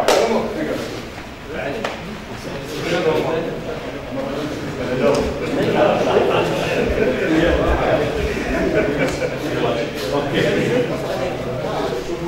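Several men talk at once in a room with some echo.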